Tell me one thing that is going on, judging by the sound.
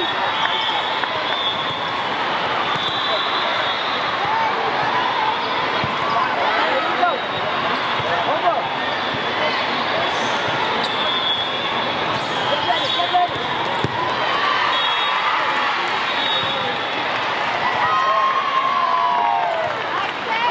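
Shoes squeak sharply on a hard court in a large echoing hall.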